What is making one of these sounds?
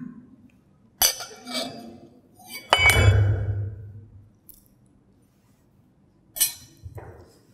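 Glass clinks against glass.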